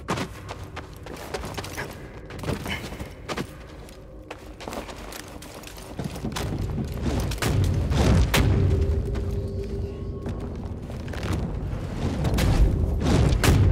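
Footsteps thud on stone as a person runs.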